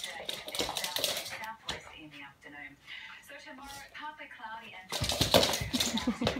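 A small dog barks sharply nearby.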